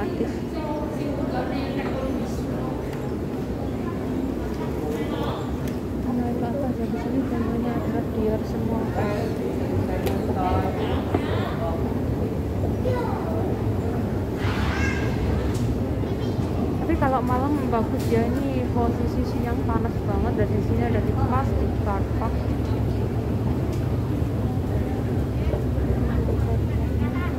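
Nearby men and women chatter in the background.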